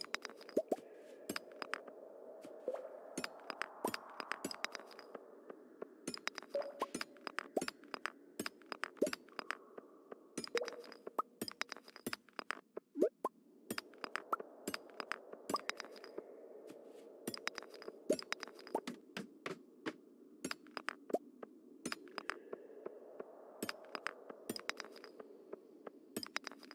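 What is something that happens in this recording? A pickaxe strikes rocks with sharp, rapid clicks.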